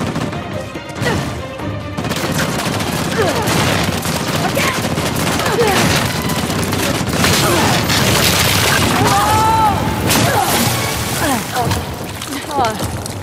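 Gunfire cracks and booms nearby.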